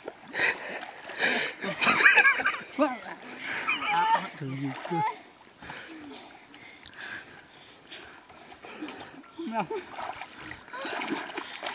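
Muddy water splashes and sloshes.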